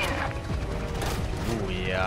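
A heavy machine gun fires a burst.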